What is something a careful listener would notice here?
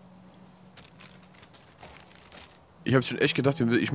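A paper map rustles and crinkles as it is unfolded.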